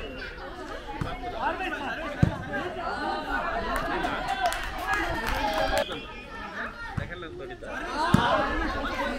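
A volleyball is struck by hand with a sharp slap.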